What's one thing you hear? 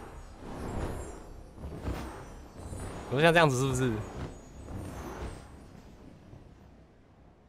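A shimmering, sparkling whoosh swells and fades as something glides through the air.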